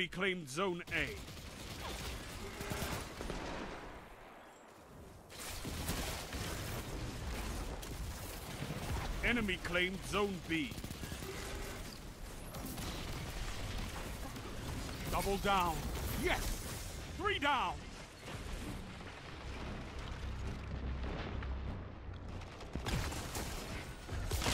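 Rapid gunfire bursts in quick volleys.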